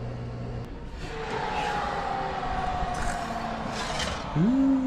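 An oven door creaks open.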